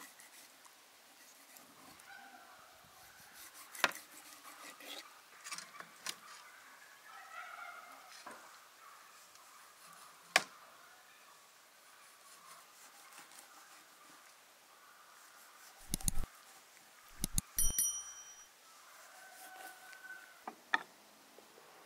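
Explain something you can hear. A knife slices through fish and taps against a hard surface.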